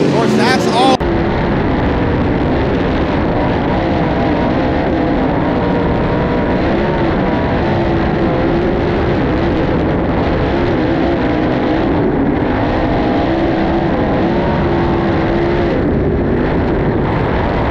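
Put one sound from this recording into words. A race car engine drones loudly and steadily from up close, muffled and rumbling.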